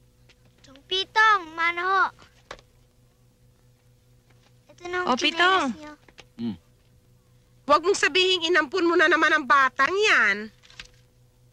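A young girl speaks with animation nearby.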